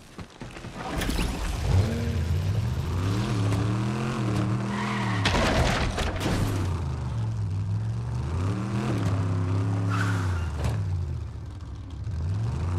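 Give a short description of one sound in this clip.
A vehicle engine revs and roars, rising and falling in pitch.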